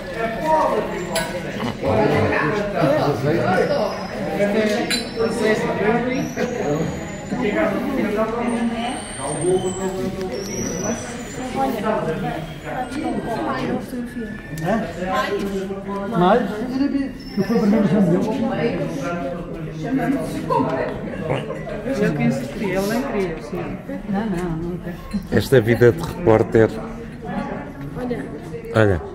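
A crowd of adults chatters all around in a large echoing hall.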